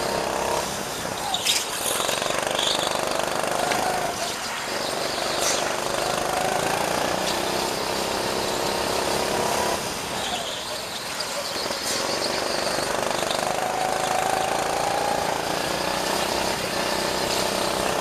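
A go-kart engine whines steadily up close, rising and falling as it speeds up and slows down.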